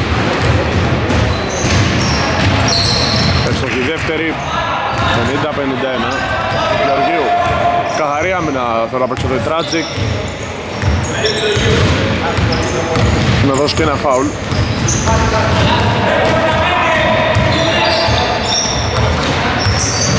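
Sneakers squeak on a wooden court in an echoing gym.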